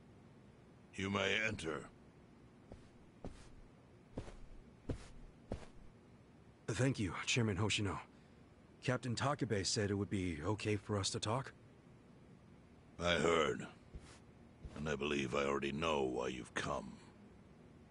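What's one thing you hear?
An elderly man speaks calmly in a deep voice.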